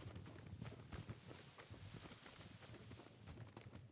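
Footsteps run quickly through rustling tall grass.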